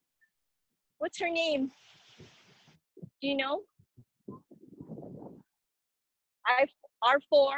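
A young woman speaks with animation into a microphone, heard as if over an online call.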